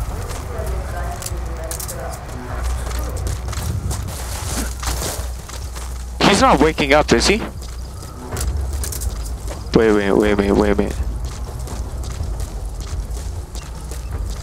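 Footsteps crunch softly over dirt and gravel.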